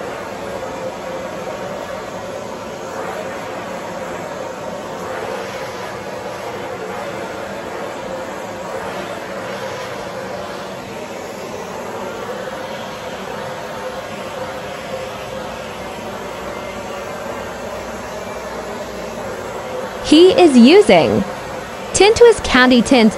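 A heat gun blows with a steady whir.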